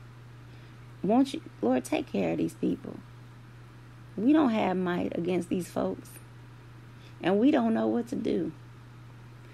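A woman speaks calmly and closely into a microphone, in short phrases with pauses.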